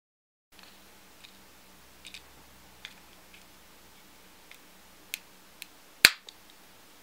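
Small plastic and metal parts click and rattle.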